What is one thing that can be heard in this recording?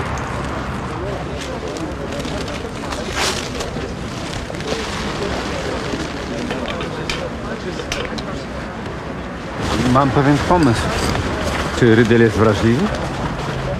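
A middle-aged man talks with other men outdoors.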